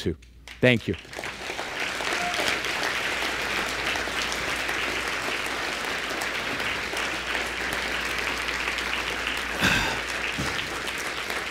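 A large audience applauds in a big hall.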